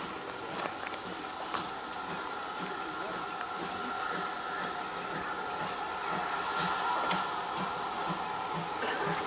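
A steam locomotive chuffs rhythmically as it approaches.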